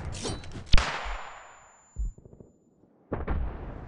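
A high ringing tone follows a stun grenade blast and fades.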